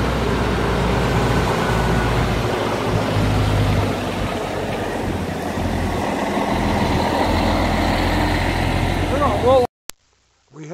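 A heavy truck engine rumbles nearby as the truck pulls slowly past.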